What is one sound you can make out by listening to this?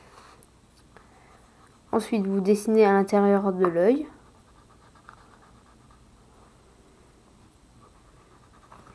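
A marker pen scratches softly on paper.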